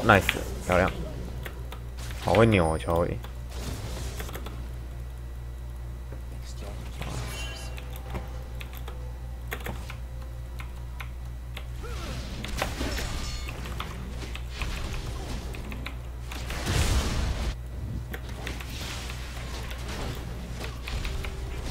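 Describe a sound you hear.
Fighting effects from a video game clash and whoosh.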